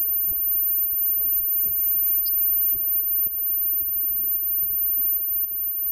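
A live band plays loudly.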